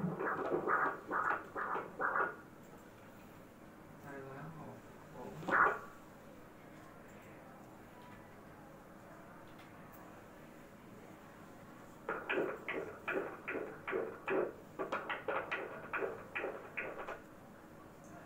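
An ultrasound machine plays Doppler blood-flow sounds as pulsing whooshes with each heartbeat.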